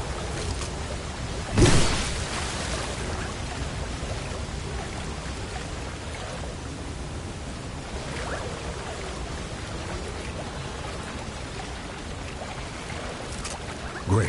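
Water splashes steadily as someone wades through it.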